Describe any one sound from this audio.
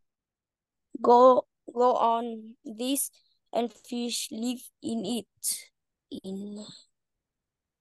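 A young boy speaks over an online call.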